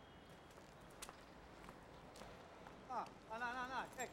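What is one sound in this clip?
A woman's high heels click on pavement.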